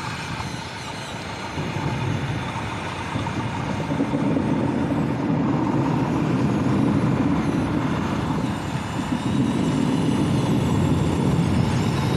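A small electric motor whirs steadily.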